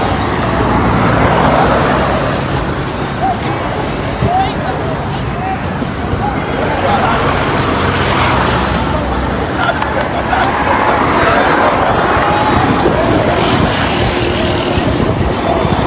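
Thrown stones clatter on a hard road.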